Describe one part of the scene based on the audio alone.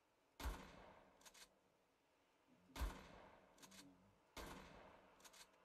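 A shotgun fires loudly, with a short echo.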